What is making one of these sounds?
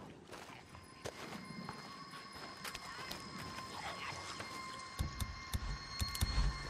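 Footsteps crunch on dirt and leaves.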